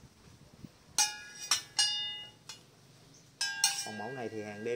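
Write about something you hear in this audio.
Metal propeller blades clink together and ring out briefly.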